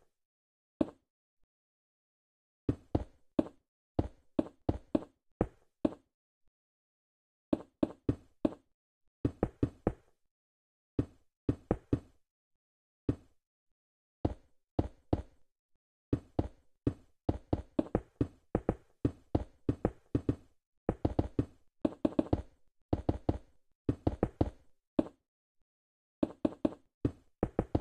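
Wooden blocks are placed with short, soft knocks in quick bursts.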